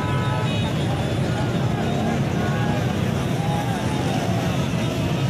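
Car horns honk repeatedly.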